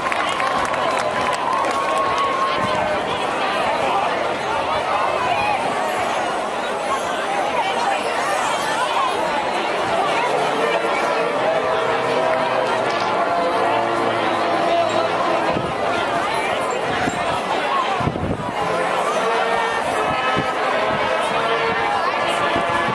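Drums beat in time with a marching band.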